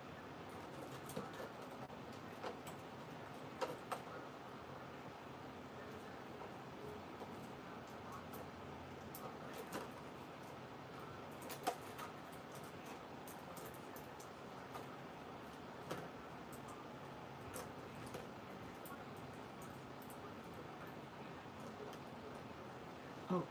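Hands rustle and tap plastic packaging.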